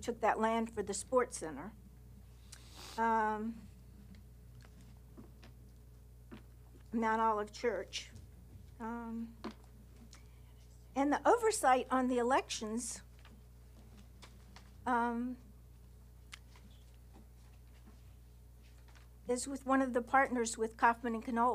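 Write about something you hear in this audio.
An older woman speaks slowly into a microphone, with long pauses.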